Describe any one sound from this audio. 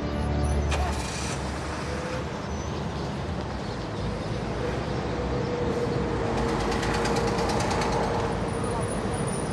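Street traffic rumbles in the background.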